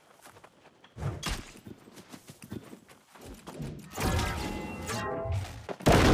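Metal weapons clash in a fight.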